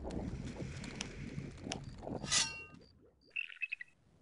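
A magic spell crackles and flashes with a bright burst.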